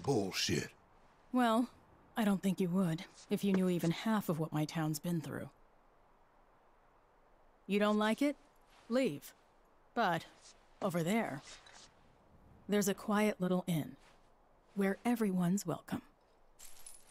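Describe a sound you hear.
A young woman speaks calmly and wistfully, close by.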